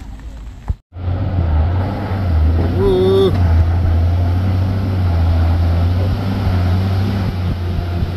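A heavy truck engine rumbles loudly as the truck climbs toward the listener.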